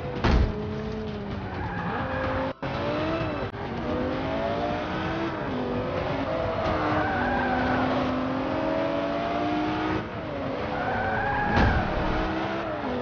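Tyres screech on asphalt through corners.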